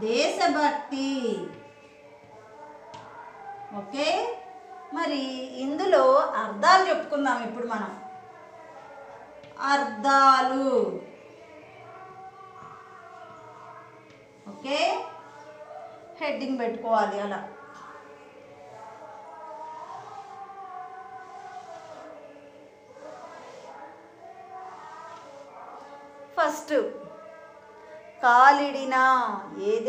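A middle-aged woman speaks up close, in a teaching manner.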